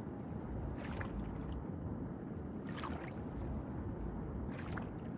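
A low, steady underwater rumble fills the space.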